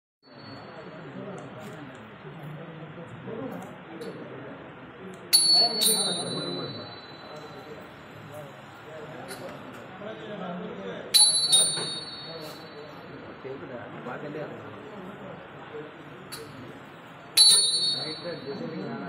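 Several men talk and murmur close by.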